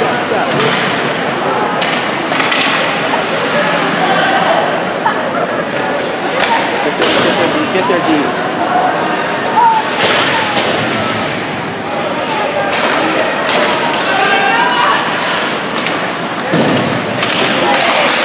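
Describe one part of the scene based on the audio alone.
Skate blades scrape across the ice.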